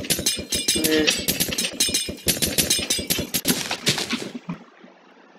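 A glass bottle shatters with a fizzing splash.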